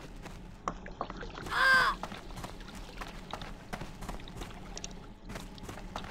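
Footsteps patter softly on stone.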